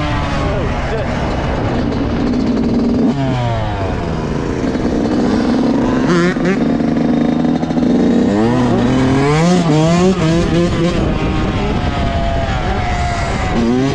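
A dirt bike engine revs loudly up and down close by.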